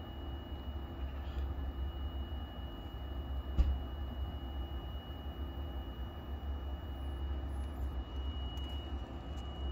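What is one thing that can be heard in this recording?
A compressor hums steadily and low nearby.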